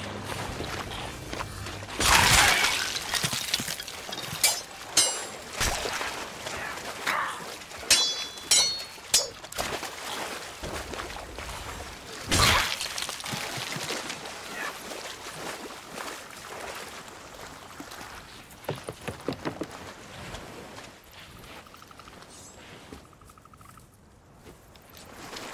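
Small waves lap gently at a shore.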